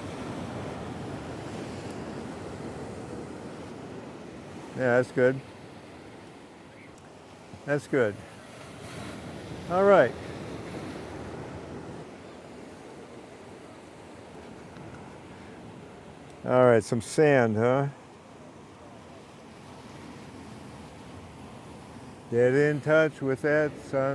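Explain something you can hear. Waves break and wash over rocks nearby.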